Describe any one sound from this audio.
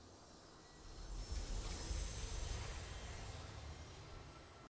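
A triumphant fanfare swells.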